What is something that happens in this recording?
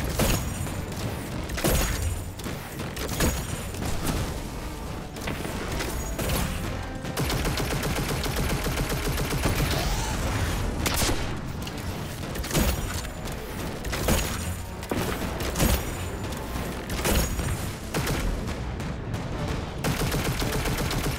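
Heavy guns fire in sharp bursts.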